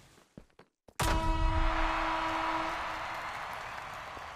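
A bright video game chime rings out with a sparkling burst as a point is scored.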